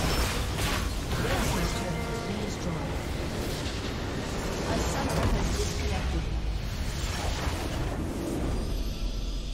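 Game spells crackle and clash in a busy fight.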